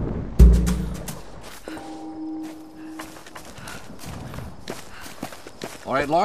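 Footsteps crunch on damp ground.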